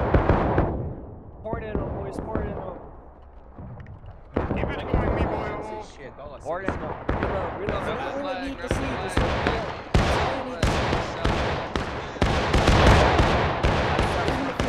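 Rifle shots crack repeatedly, some close and some farther off.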